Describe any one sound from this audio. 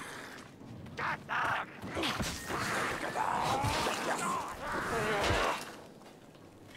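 A melee weapon hits a creature with wet, heavy blows.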